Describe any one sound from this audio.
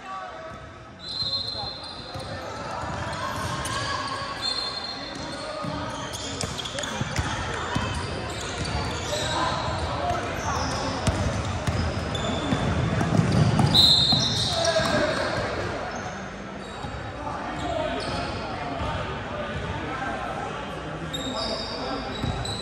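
Sneakers squeak sharply on a wooden floor in a large echoing gym.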